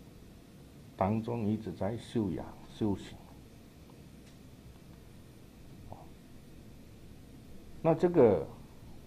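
A man speaks slowly and calmly into a microphone, in short phrases with pauses.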